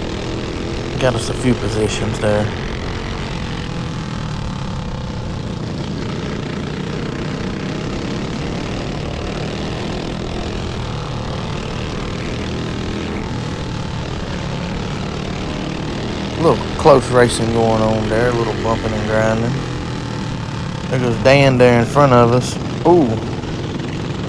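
Other kart engines whine loudly as they pass close by.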